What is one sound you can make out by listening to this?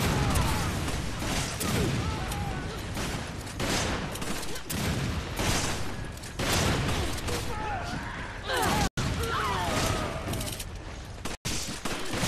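Gunshots and loud blasts ring out in bursts.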